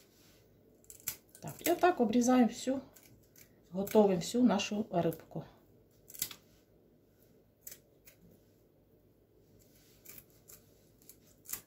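Scissors snip through a fish.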